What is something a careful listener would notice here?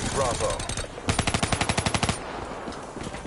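Automatic gunfire rattles in a rapid burst.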